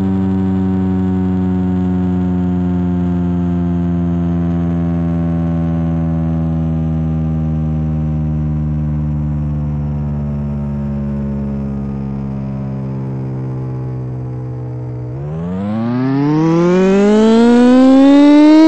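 A siren drones low and slowly winds down, then rises sharply in a loud wail.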